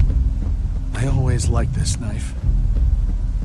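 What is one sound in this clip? A man says a short line in a low, calm voice.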